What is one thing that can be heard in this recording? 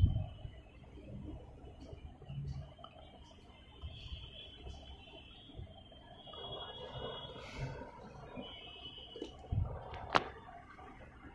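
Air bubbles gurgle softly through water.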